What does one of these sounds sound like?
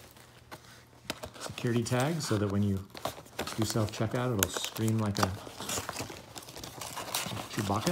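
Cardboard rustles and scrapes as a box is pulled open.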